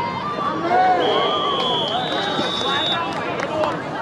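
A referee's whistle blows in short shrill blasts.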